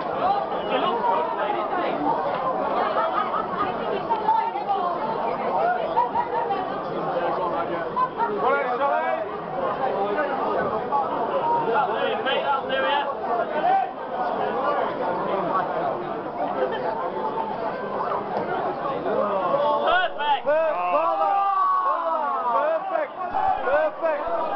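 A crowd of men chatter loudly all around in a large echoing hall.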